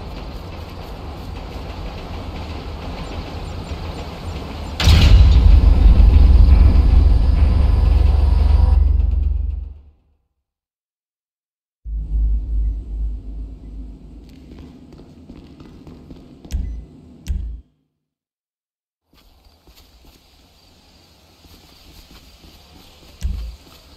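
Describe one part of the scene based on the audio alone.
Footsteps thud on the ground as a man runs.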